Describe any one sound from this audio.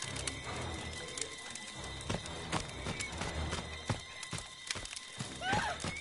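A campfire crackles.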